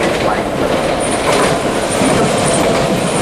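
Train wheels squeal with a high, steady whine.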